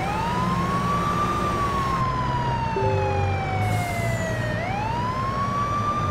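An ambulance siren wails, rising and falling slowly.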